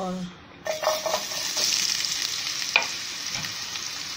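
Pieces of food drop into a pan of hot oil.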